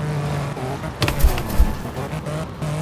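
A car crashes with a loud metallic bang.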